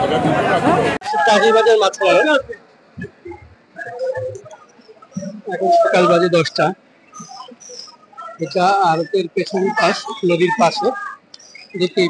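A crowd of men chatter nearby, outdoors.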